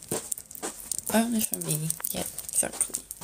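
A young woman talks close to a phone microphone.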